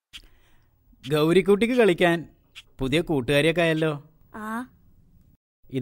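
A young girl speaks with animation nearby.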